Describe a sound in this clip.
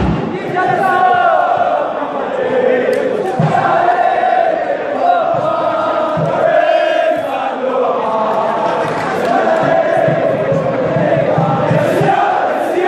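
A large crowd of men chants and sings loudly together, outdoors in an open stadium.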